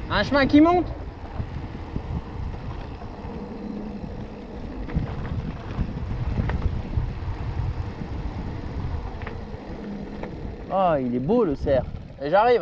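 Wind rumbles against the microphone while riding.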